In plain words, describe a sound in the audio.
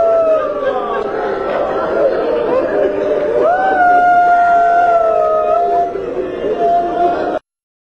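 A man recites in a long, drawn-out chanting voice through a microphone.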